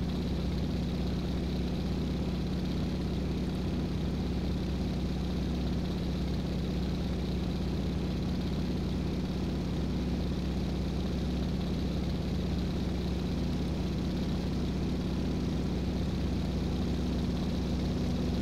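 A propeller aircraft engine drones steadily at close range.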